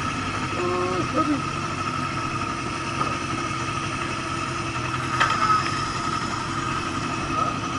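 A motorcycle engine idles steadily close by.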